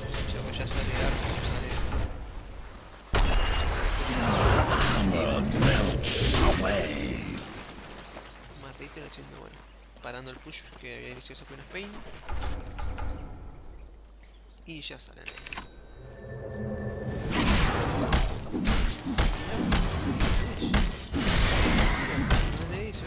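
Rapid video game combat effects of clashing hits and spells ring out.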